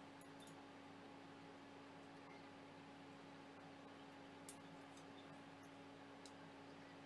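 Small metal parts click and tap against each other.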